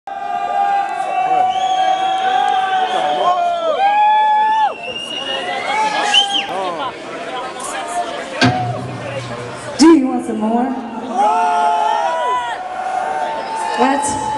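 A concert crowd cheers and screams in a large hall.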